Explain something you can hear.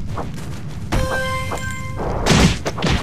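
A chime rings out as an item is collected.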